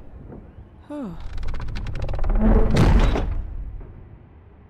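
Heavy wooden doors grind and creak open.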